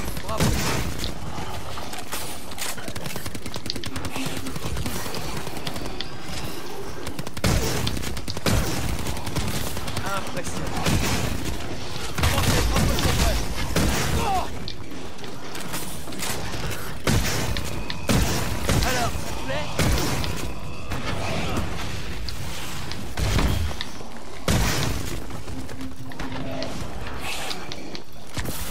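A futuristic energy gun fires repeatedly in quick zaps.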